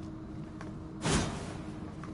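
A flame bursts with a short whoosh.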